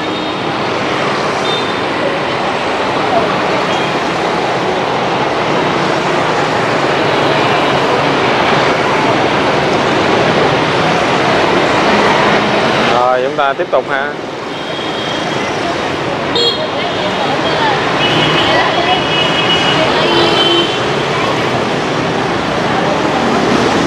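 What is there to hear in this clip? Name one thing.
Motorbike engines buzz past close by.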